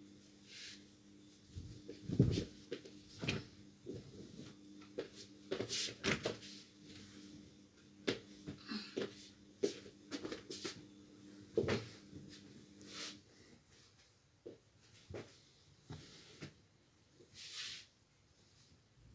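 A thick blanket rustles and flaps as it is shaken and spread out.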